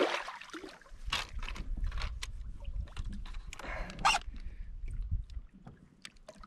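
A fishing reel whirs as its line is wound in.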